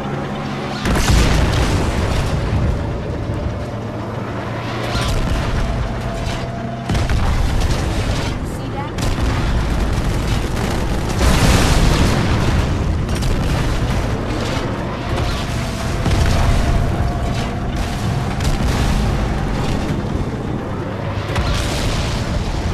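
Explosions boom in loud bursts.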